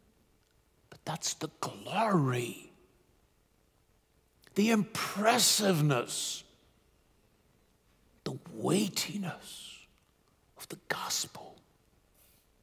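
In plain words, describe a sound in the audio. A middle-aged man speaks calmly into a microphone in short bursts with long pauses.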